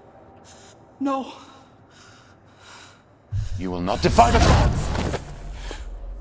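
A young woman shouts angrily, close by.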